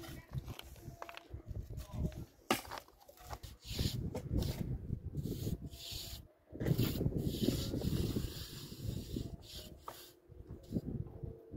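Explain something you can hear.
A trowel scrapes and taps on concrete blocks.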